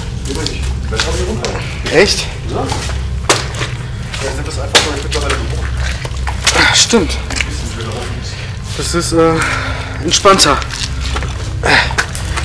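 Footsteps crunch and scrape on loose rock and gravel.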